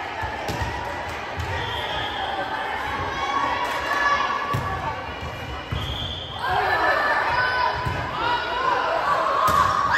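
A volleyball is struck with sharp smacks in a large echoing gym.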